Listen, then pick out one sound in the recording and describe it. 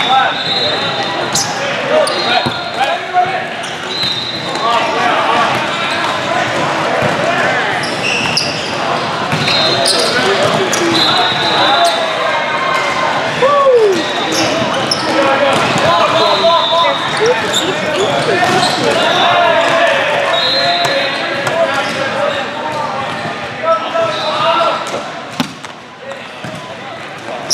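A crowd of young men and spectators chatter and shout throughout.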